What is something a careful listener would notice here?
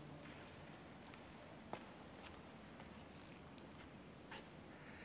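Footsteps tap across a hard floor in a large echoing hall.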